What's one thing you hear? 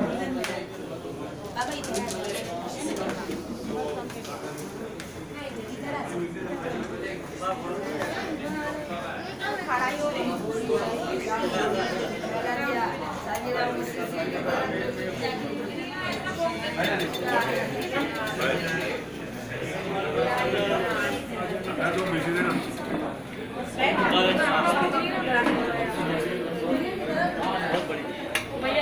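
Several adults chat and murmur together nearby, in a room that echoes a little.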